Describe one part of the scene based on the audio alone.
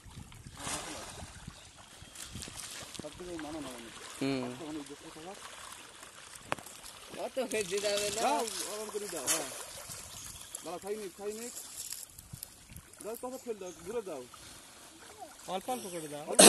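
Fish thrash and splash at the water's surface.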